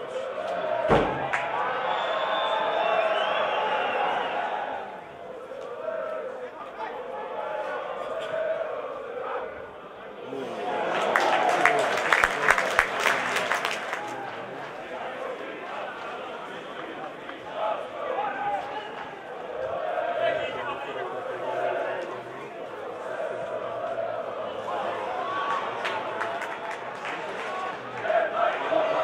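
A stadium crowd cheers and shouts outdoors.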